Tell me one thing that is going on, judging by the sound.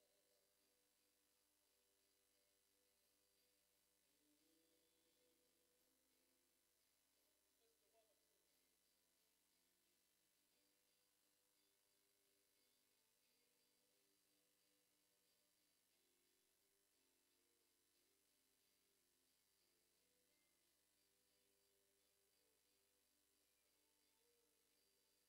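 A band plays electric guitars outdoors, heard faintly.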